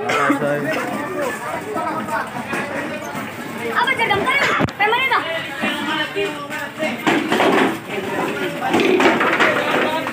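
Men shout and talk excitedly nearby.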